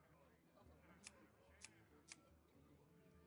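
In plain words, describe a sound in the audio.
Short sharp clicks sound a few times.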